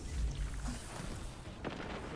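Lightning crackles and booms with an electric buzz.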